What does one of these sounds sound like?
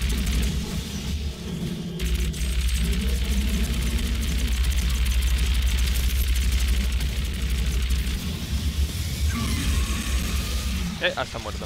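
A plasma gun fires rapid buzzing shots.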